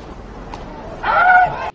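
A man shouts a call loudly.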